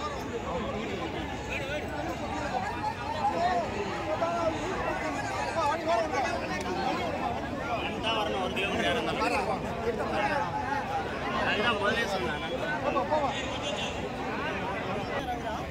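A large crowd of men talks and shouts all around, close by and outdoors.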